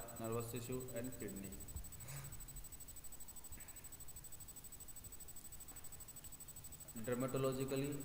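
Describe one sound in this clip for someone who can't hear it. A man speaks calmly close to the microphone, with pauses.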